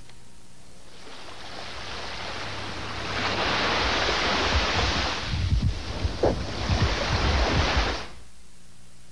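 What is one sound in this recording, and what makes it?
Ocean waves wash onto a beach.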